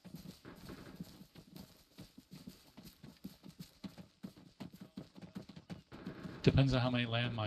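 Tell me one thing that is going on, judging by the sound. Footsteps crunch on dry grass and rock.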